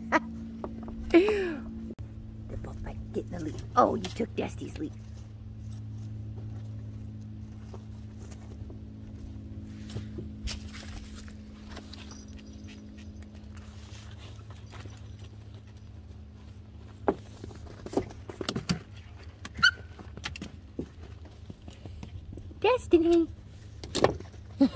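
Small puppies yip and whine in short bursts nearby.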